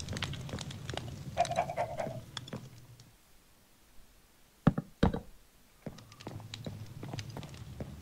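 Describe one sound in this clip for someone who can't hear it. Fire crackles in a furnace.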